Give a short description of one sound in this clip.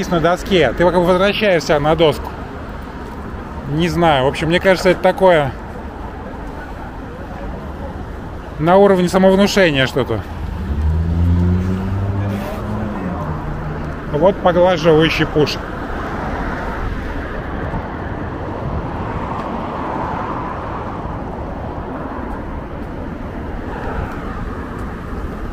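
Skateboard wheels roll steadily over asphalt.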